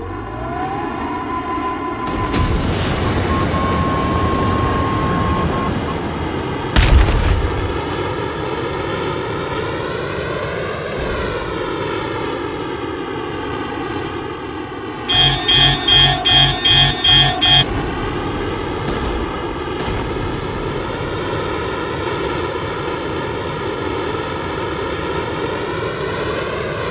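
A jet engine roars steadily throughout.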